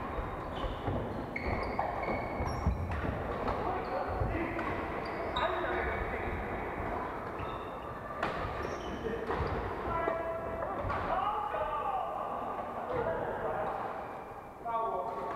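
Voices of young men and women call out across a large echoing hall.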